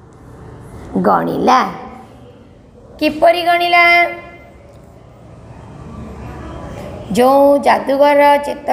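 A woman speaks loudly in drawn-out phrases, as if reciting.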